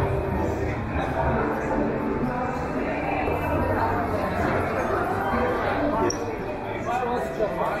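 A crowd of people chatter throughout a large, busy hall.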